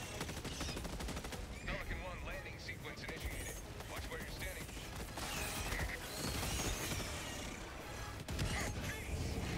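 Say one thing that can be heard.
A heavy gun fires rapid bursts.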